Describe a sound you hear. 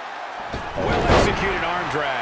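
A body slams onto a wrestling mat with a loud thud.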